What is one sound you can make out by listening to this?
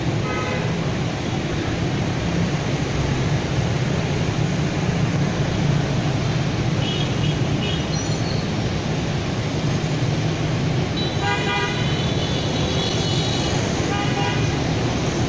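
Dense city traffic roars steadily outdoors.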